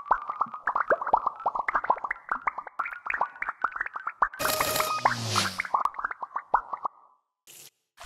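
Soap bubbles pop in quick, bright little blips.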